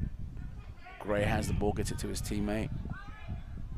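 A man shouts loudly on a sports field outdoors.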